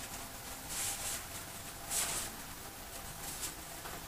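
Pages of a book rustle as they are turned.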